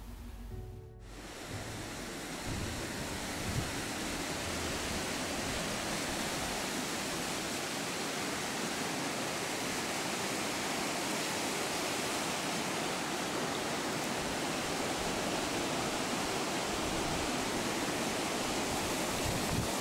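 Water rushes loudly through a weir.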